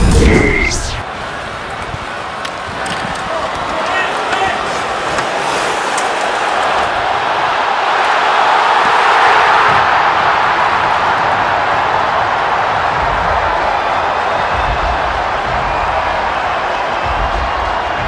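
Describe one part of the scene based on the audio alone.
A large arena crowd roars and cheers loudly.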